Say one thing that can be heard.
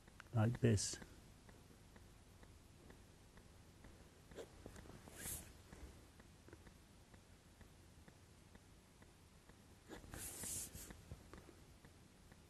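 A pencil scratches across paper.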